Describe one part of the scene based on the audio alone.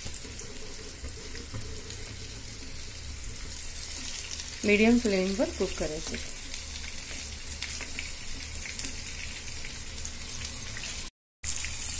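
A wooden spatula scrapes against a frying pan.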